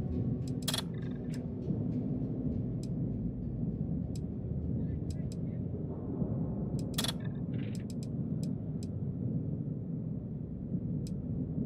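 Short electronic interface clicks sound now and then.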